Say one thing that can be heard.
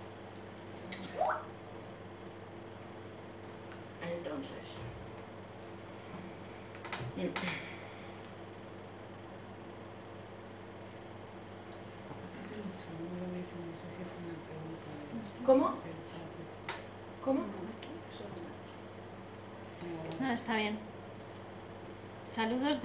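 A woman speaks calmly and close to a microphone, in short bursts.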